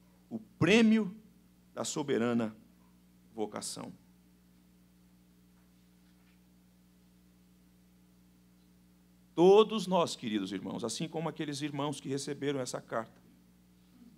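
A man reads out calmly into a microphone, pausing between phrases.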